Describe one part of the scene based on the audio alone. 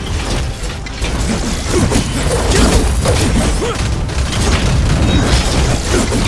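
Heavy blows and bursts of fire crash loudly in quick succession.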